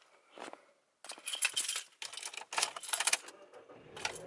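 Keys jingle and clink close by.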